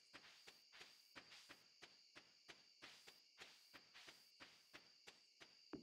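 Quick, even footsteps tap in a steady rhythm.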